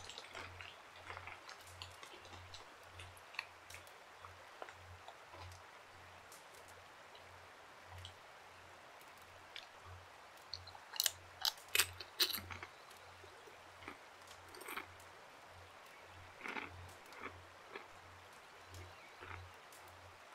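A fire crackles and pops in a fireplace.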